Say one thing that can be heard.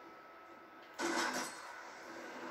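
A gunshot rings out from a television's speakers.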